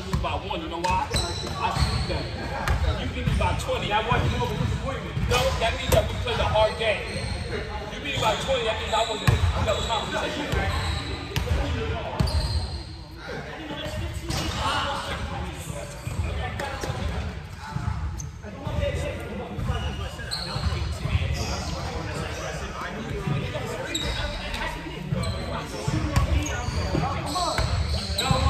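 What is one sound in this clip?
Young men talk and call out across a large echoing gym.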